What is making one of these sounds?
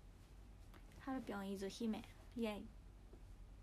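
A young woman laughs softly.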